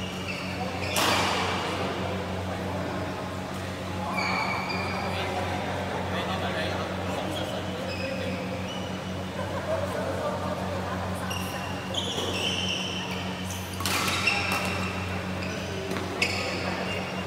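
Badminton rackets hit a shuttlecock with light taps.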